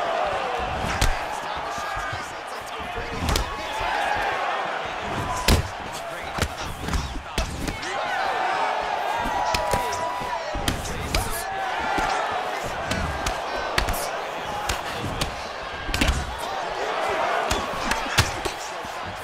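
Punches thud against bodies in sharp, scattered hits.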